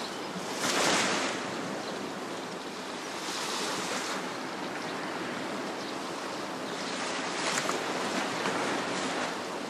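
Gentle sea waves wash onto a sandy shore.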